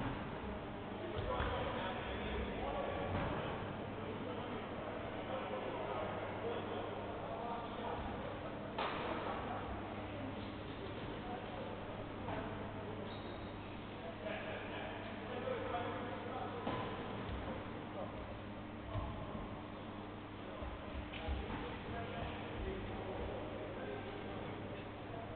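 Young people talk and call out at a distance in a large echoing hall.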